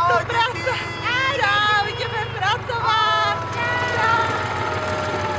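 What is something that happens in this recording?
Two women shout and cheer with excitement.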